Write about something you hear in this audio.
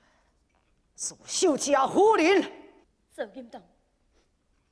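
A man sings in a high, stylized opera voice.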